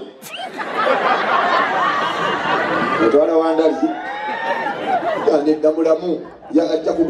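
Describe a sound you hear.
A man speaks with animation into a microphone through loudspeakers.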